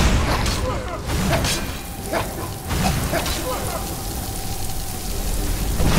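A magic spell crackles and whooshes.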